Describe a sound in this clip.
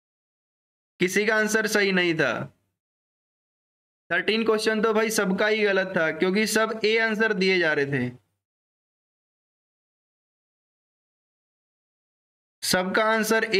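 A man speaks calmly and clearly into a close microphone, in short bursts with pauses.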